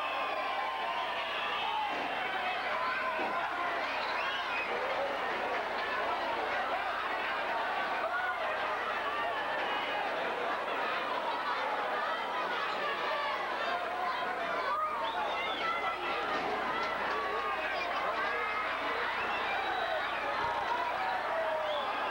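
A large crowd shouts and cheers throughout.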